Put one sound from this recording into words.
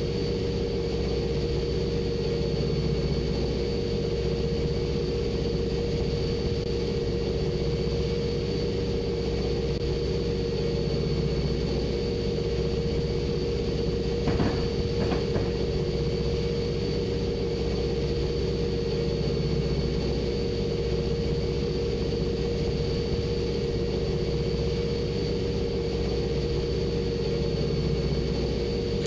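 A diesel locomotive engine hums steadily from inside the cab.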